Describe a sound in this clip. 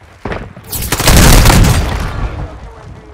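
A loud explosion booms close by.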